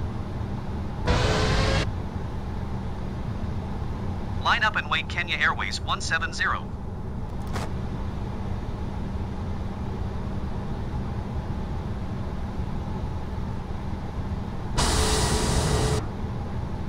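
A jet engine hums steadily at idle.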